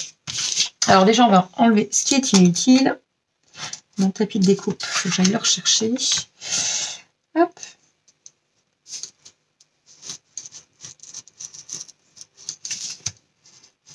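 A craft knife scrapes and cuts through cardboard.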